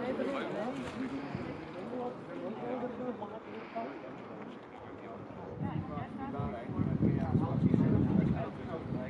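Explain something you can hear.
Several men talk calmly nearby outdoors.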